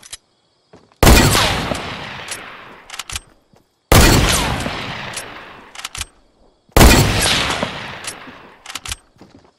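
Heavy gunshots boom loudly, each one echoing away slowly.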